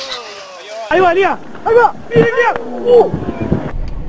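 Water splashes as a man falls into shallow water.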